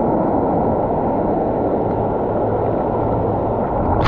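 A waterfall pours down nearby.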